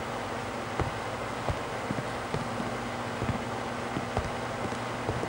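Footsteps thud slowly on a wooden floor.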